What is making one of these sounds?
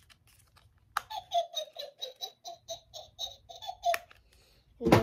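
A toy plays a high, bouncing electronic tune.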